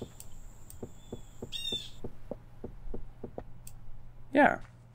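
A pickaxe chips at stone blocks with quick, regular knocks.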